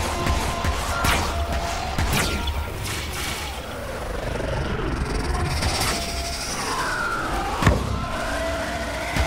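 Monsters shriek and growl.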